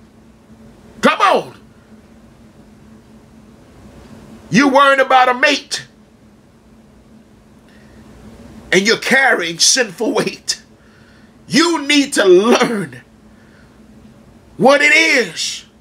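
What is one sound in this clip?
A middle-aged man speaks close by with animation, in short bursts separated by pauses.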